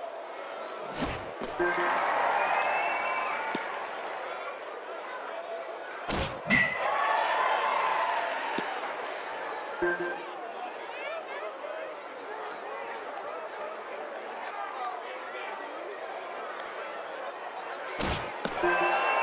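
A baseball smacks sharply into a mitt or off a bat.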